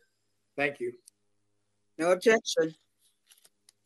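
A man speaks briefly and calmly over an online call.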